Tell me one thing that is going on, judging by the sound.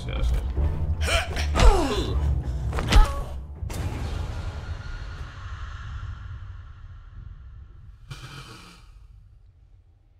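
A young man shouts close to a microphone.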